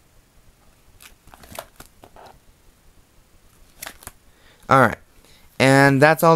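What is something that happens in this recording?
Plastic binder pages rustle and crinkle as they are turned.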